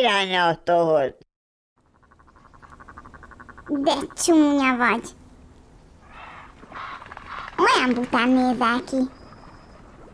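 Ducks quack in high, squeaky bursts.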